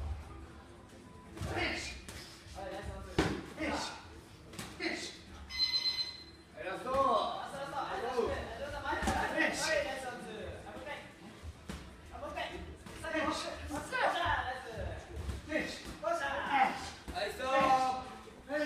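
Gloved punches thud against bodies and pads.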